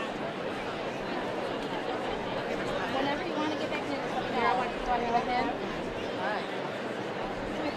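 A large outdoor crowd murmurs and chatters steadily.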